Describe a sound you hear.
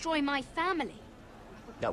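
A young woman speaks urgently and upset, close by.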